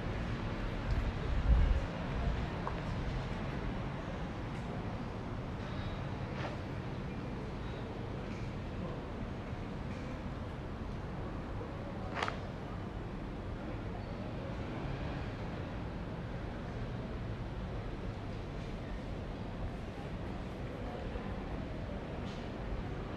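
A city street hums steadily with low traffic noise outdoors.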